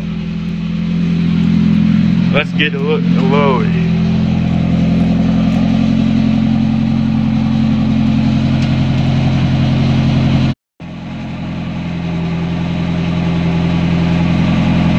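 A car engine idles through an aftermarket dual exhaust.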